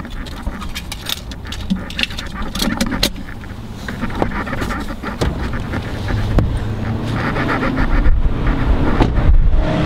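A car engine hums steadily while driving.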